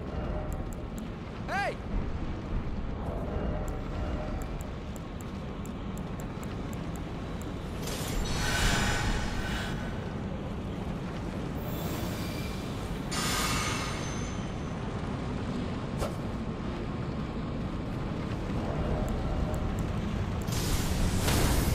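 Menu selections tick with short soft clicks.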